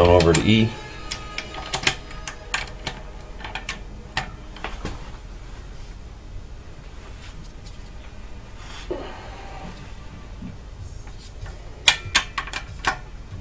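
A ratchet wrench clicks rapidly as it turns a bolt.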